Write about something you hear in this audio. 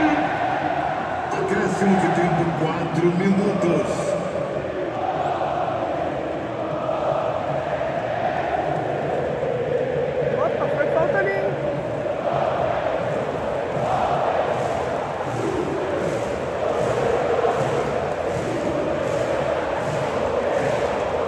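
A large stadium crowd sings and chants loudly throughout.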